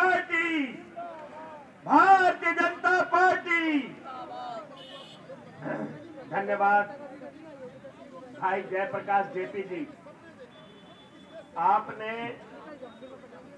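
A middle-aged man gives a loud, impassioned speech through a microphone and loudspeakers outdoors, in bursts with pauses.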